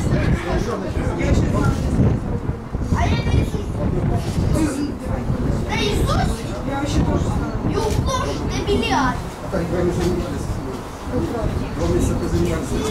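Wind gusts and rumbles loudly outdoors.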